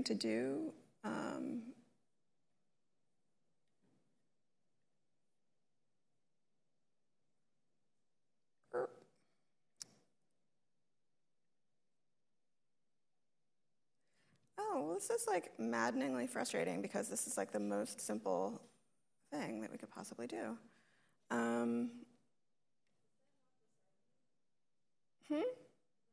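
A woman speaks calmly into a microphone, in bursts with pauses.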